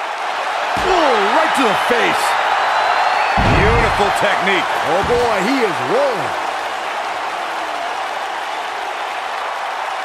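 A large crowd cheers and roars steadily in an arena.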